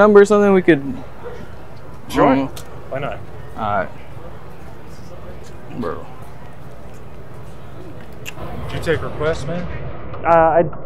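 Young men talk and laugh nearby outdoors.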